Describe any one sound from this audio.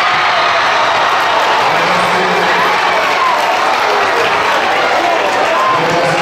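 A large crowd cheers and chants loudly in an echoing gym.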